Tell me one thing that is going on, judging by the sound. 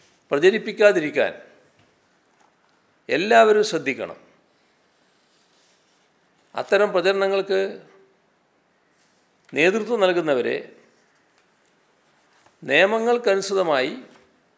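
An elderly man speaks calmly into a microphone in short, paused phrases.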